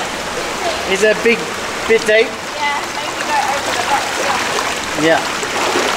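A stream of water rushes and gurgles over rocks close by.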